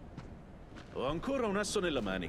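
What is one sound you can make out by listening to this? A man speaks calmly and firmly.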